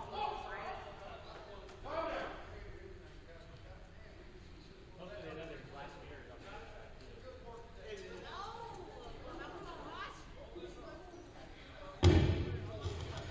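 Several men and women chat at a distance in a large echoing hall.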